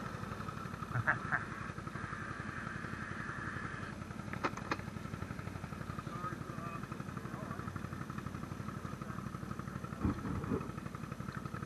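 Knocks and bumps ring out from the quad bike now and then.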